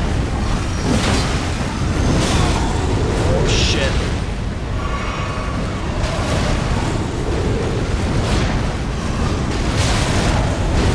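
Swords clash and strike with sharp metallic hits.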